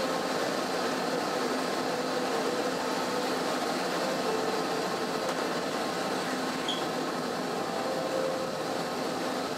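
A ship's engine hums steadily close by.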